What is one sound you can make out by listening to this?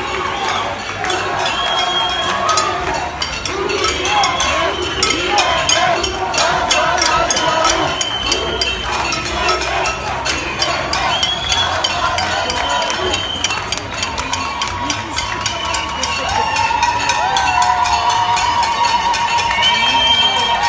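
Hands clap rapidly and rhythmically in a crowd.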